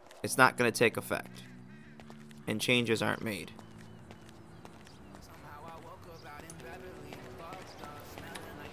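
Footsteps scuff on pavement at a walking pace.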